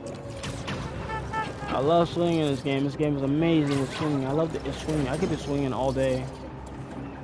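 A young man speaks in a lively, sing-song voice close to a headset microphone.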